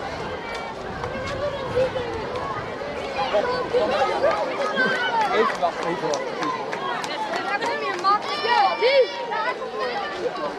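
Children call out and talk with animation close by.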